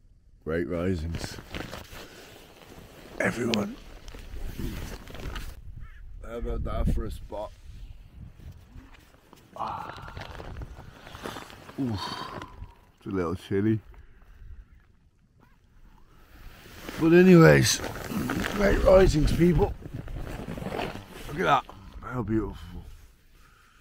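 A young man talks with animation close to a microphone, outdoors in wind.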